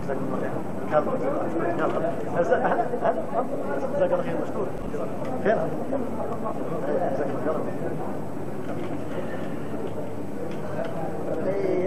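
A crowd of men talk and laugh loudly close by.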